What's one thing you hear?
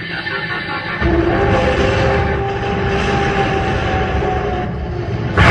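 A glowing energy ball roars with a deep rumble.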